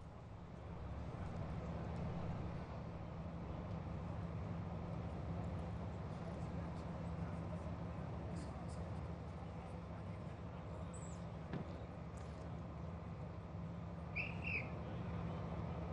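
A van engine hums steadily as the van drives slowly past outdoors.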